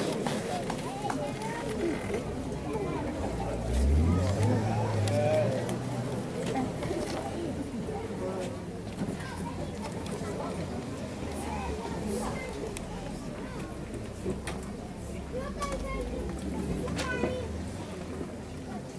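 A wind band plays outdoors.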